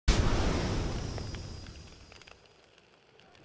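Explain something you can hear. A burst of flames roars with a loud whoosh and slowly fades.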